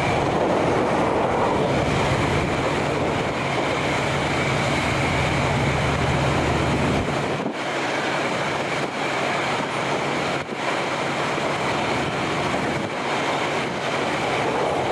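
A train rolls steadily along the tracks with a low rumble.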